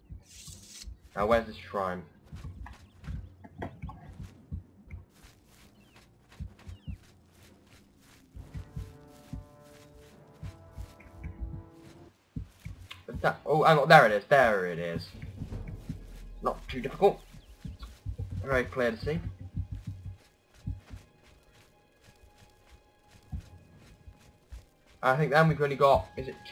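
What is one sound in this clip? Footsteps tread softly over grass and earth.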